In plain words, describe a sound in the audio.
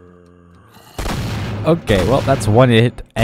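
A revolver fires with a sharp bang.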